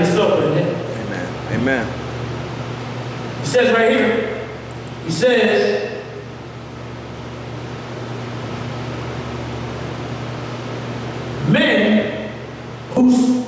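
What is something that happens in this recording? A man preaches in bursts through a microphone and loudspeaker in an echoing hall.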